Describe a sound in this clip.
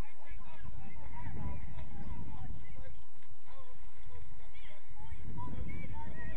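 Young men shout to each other in the distance across an open pitch.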